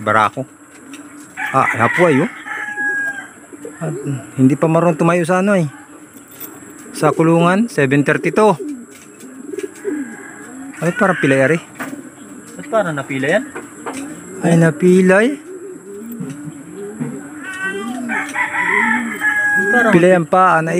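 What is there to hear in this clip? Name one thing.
A pigeon coos in deep, repeated bursts close by.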